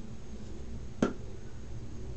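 A plastic hair clip snaps shut with a sharp click.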